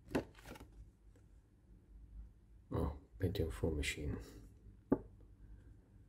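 Hands handle a paper card with soft rustles.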